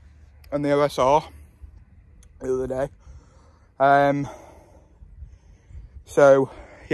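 A young man speaks loudly and with animation close by, in short bursts.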